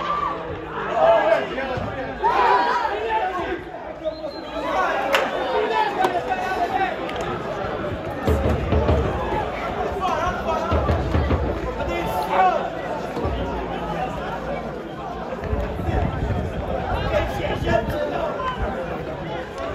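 Men talk and shout nearby outdoors.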